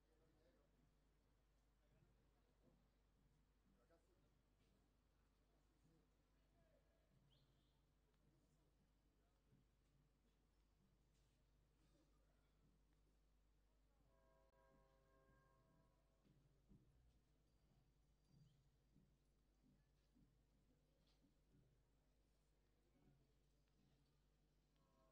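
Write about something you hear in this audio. A sparse crowd murmurs faintly in a large open arena.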